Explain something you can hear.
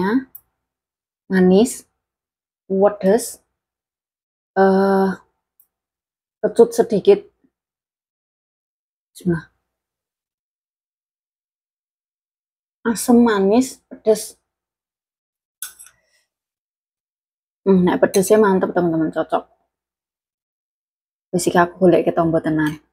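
A young woman talks calmly and close to a clip-on microphone, with pauses between phrases.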